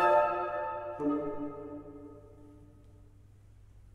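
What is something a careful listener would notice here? A woodwind ensemble plays a final chord that rings out and fades in a large echoing hall.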